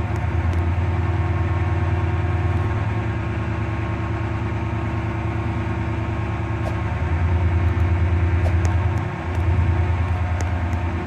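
A train engine hums steadily, rising and falling in loudness.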